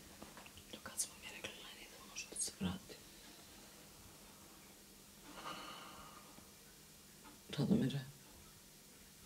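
A woman speaks quietly and briefly, close by.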